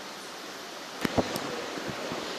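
A microphone is bumped and knocks.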